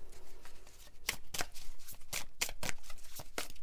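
Playing cards riffle and flick quickly as they are shuffled.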